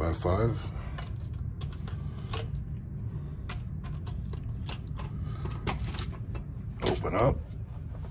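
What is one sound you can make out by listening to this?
A key card taps and clicks against a door lock.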